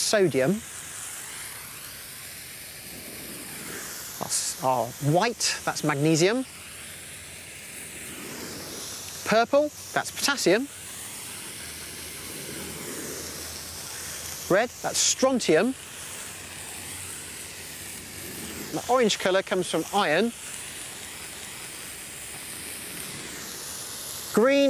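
Fireworks hiss as they burn.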